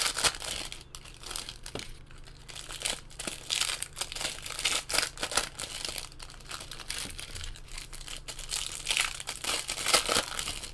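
Hands tear open and crinkle plastic foil trading card wrappers.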